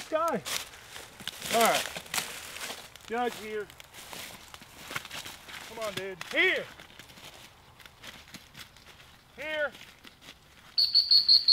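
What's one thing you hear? Footsteps crunch through dry corn stalks.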